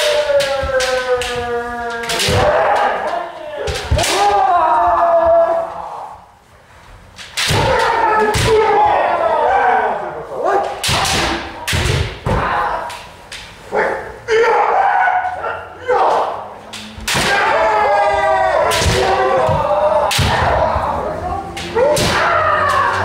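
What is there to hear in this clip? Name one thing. Kendo fencers shout loud drawn-out cries in a large echoing hall.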